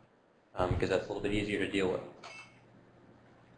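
A man speaks calmly to an audience in a room.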